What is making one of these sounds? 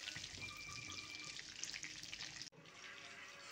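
Hot oil sizzles and bubbles in a pan.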